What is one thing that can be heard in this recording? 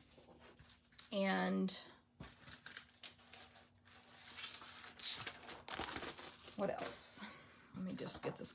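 A plastic sleeve crinkles and rustles as it is handled.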